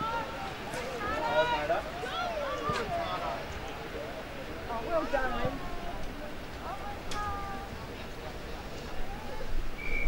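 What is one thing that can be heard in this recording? Spectators call out and cheer from the sideline.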